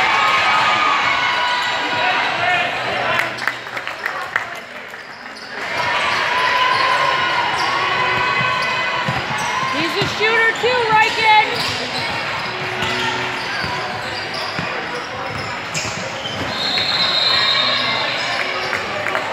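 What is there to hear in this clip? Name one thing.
Sneakers squeak sharply on a hardwood floor in a large echoing gym.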